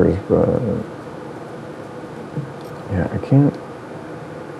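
A man speaks casually into a microphone, close by.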